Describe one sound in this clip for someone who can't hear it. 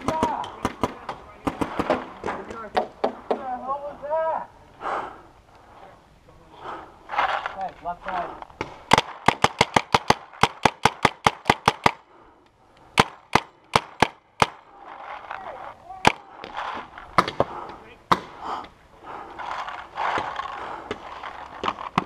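A paintball gun fires rapid sharp pops close by.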